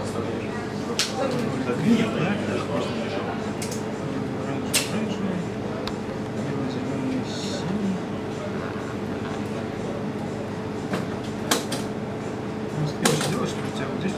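Small parts click and tap softly as hands handle them.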